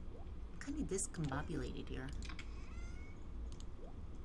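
Game menu items click as they are browsed.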